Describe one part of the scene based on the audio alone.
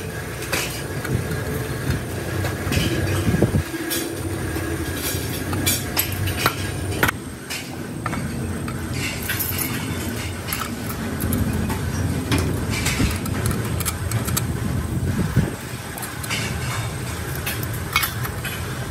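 Small metal parts clink and rattle.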